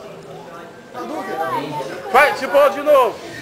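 A young man speaks loudly.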